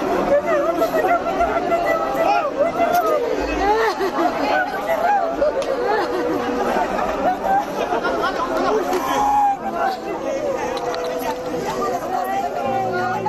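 A crowd of men chant together outdoors.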